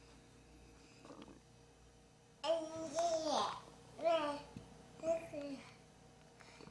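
A small child squeals and babbles playfully close by.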